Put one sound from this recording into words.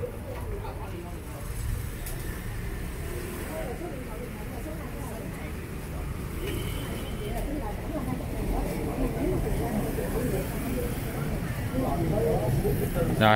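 Men talk calmly nearby.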